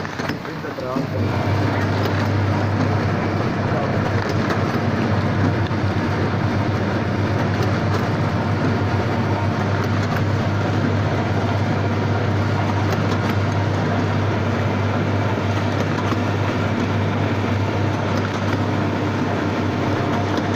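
A packaging machine hums and rattles steadily.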